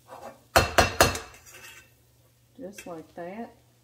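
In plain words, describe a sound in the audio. A fork scrapes and taps against a metal pan.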